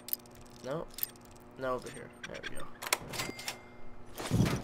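A lock pick scrapes and clicks inside a metal lock.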